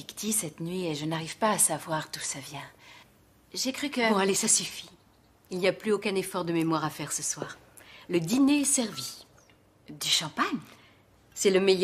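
A young woman speaks calmly and clearly up close.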